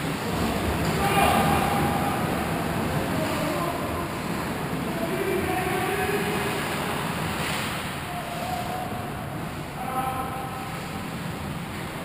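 Men call out to each other across the rink.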